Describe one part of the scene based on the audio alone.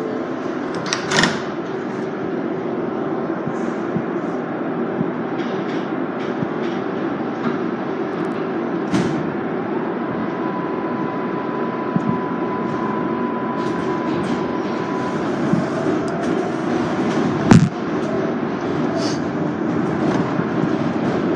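Train wheels clatter and screech on the rails.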